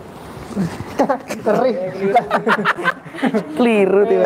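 A woman laughs close by.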